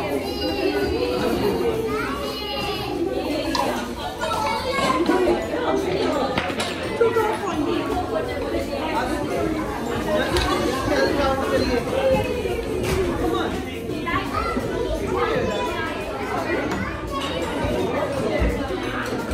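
Young children chatter and call out.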